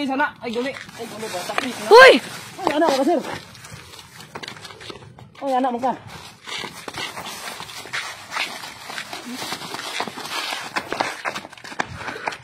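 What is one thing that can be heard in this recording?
Feet scuffle and stamp on pavement.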